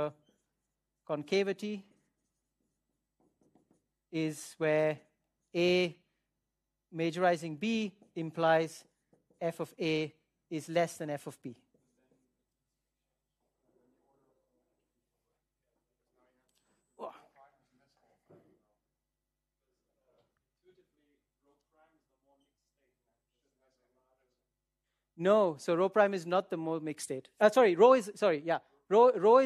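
A man speaks calmly and clearly, as if lecturing, in a room with a slight echo.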